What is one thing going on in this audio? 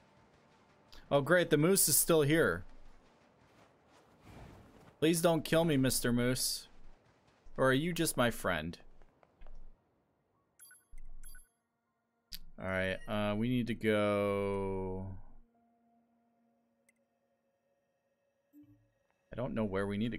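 A young man talks into a microphone with animation, close by.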